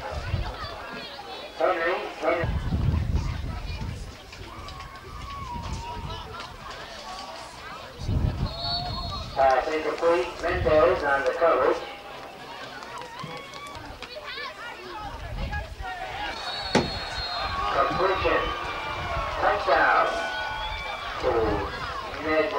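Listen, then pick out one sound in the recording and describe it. A crowd of spectators nearby shouts and cheers.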